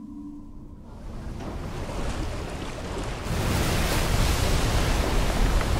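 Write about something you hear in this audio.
Water laps and splashes softly.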